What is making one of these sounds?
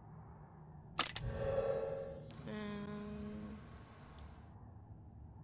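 A magical chime rings out.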